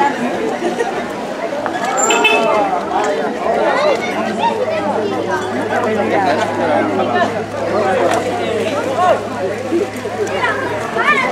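A crowd of men and women chatter loudly all around.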